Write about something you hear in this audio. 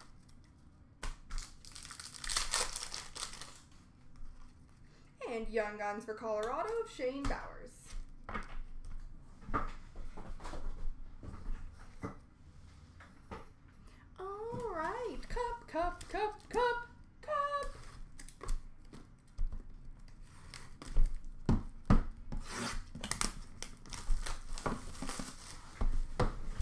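Cards and packs tap and knock on a hard counter.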